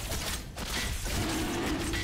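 Game spells crackle and zap with electric bursts.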